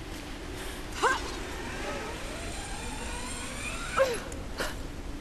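A rope line whirs as someone slides down it.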